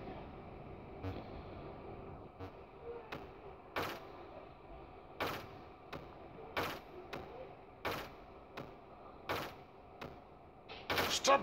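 Short electronic blips sound as a game ball bounces off bricks.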